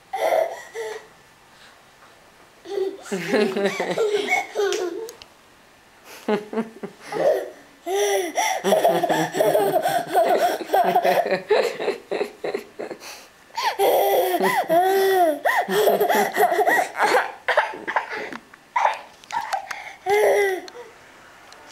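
A toddler babbles and squeals loudly, close by.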